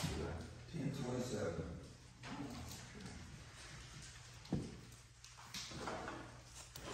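A middle-aged man speaks calmly in a room with a slight echo.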